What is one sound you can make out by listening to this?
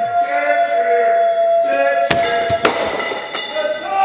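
A heavy log drops with a thud.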